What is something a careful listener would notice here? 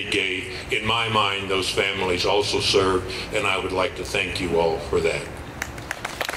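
A man speaks calmly into a microphone over a loudspeaker outdoors.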